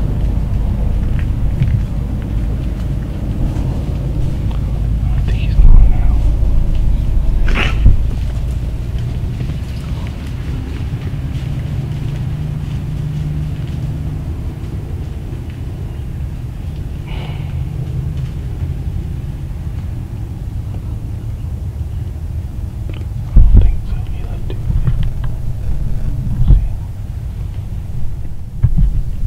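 Deer step and rustle through dry leaves nearby.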